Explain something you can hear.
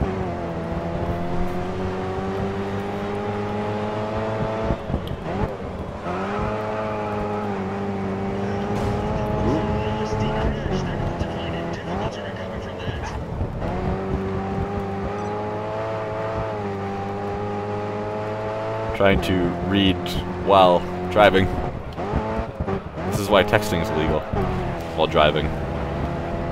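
A small racing car engine roars at high revs, dipping in pitch at each gear change.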